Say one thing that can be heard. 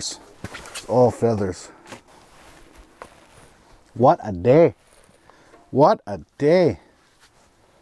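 A man talks with animation close by, in short bursts.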